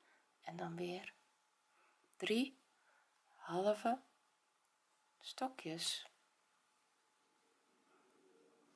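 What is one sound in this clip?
A crochet hook softly rasps through yarn.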